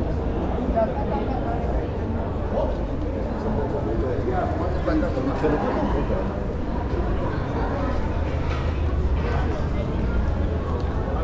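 Footsteps tap on cobblestones close by.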